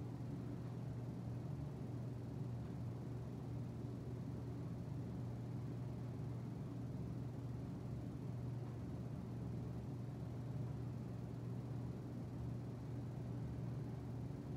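Electric fans whir steadily nearby.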